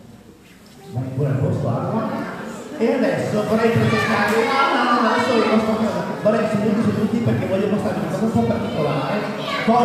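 A man speaks to children with animation, loud and close.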